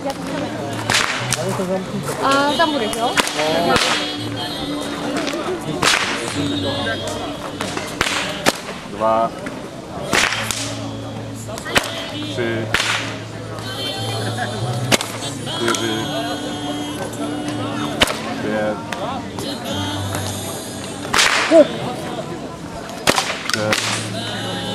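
Bullwhips crack sharply outdoors, again and again.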